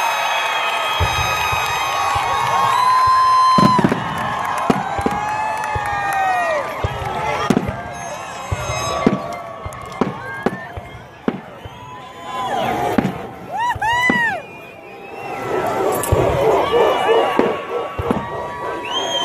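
Fireworks boom and crackle overhead.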